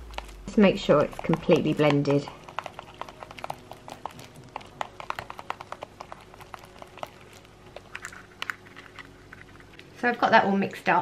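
A brush stirs thick cream in a plastic bowl with soft, quick clicks.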